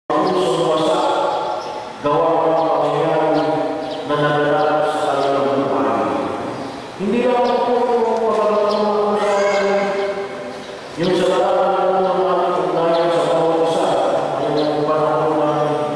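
A middle-aged man sings in long, held phrases into a microphone.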